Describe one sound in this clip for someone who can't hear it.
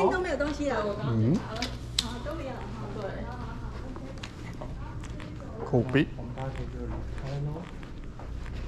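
A man talks close by with animation.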